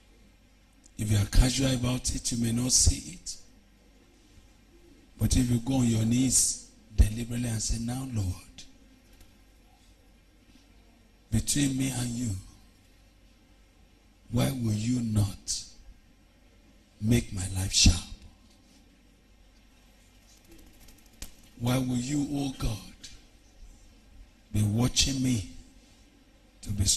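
A man prays aloud loudly and fervently, in short bursts with pauses.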